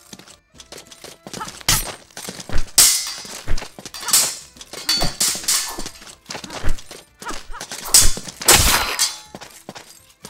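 Swords clash and swish sharply in quick bursts.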